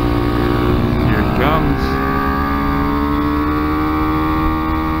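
Another motorcycle roars past close by.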